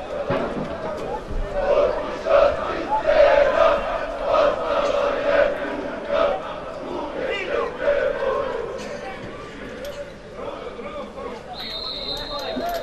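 A stadium crowd cheers and chants in the distance, outdoors.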